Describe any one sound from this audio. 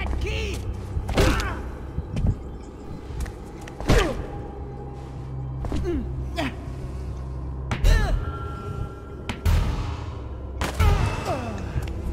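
Heavy blows thud and smack in a scuffle.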